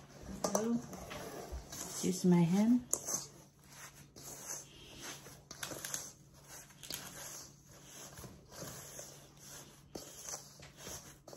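Hands squish and knead crumbly dough in a metal bowl.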